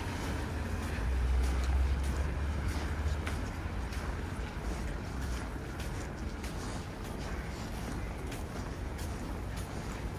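Footsteps crunch steadily on packed snow.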